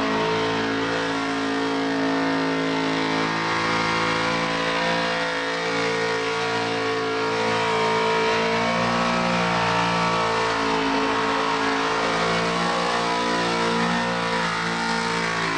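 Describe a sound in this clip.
Rear tyres squeal as they spin on asphalt.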